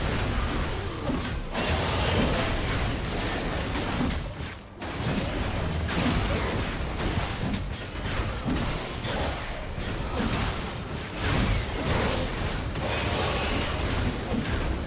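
Magic spells and weapon blows clash and crackle in a busy fight.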